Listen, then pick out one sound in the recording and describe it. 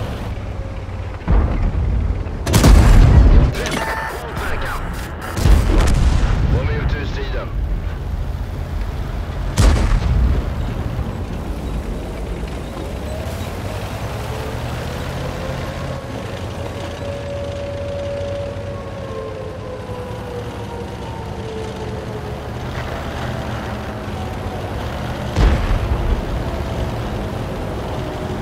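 A tank engine rumbles and its tracks clank steadily.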